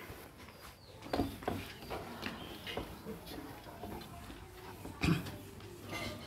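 A board eraser rubs across a whiteboard.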